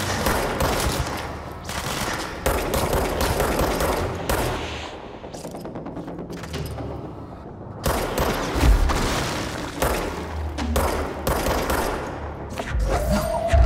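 Debris crashes and clatters around.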